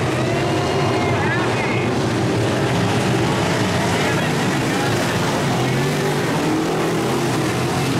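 Loud race car engines roar and rumble steadily around a dirt track.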